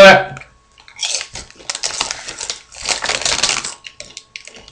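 A crinkly chip bag rustles and crackles.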